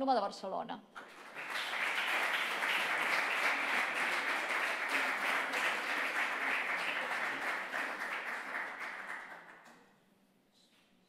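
An audience applauds steadily, then the clapping fades.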